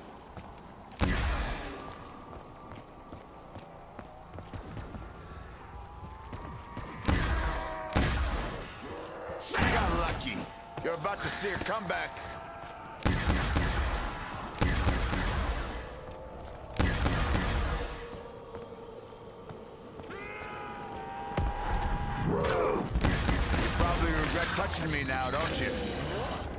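A ray gun fires with loud electric bursts.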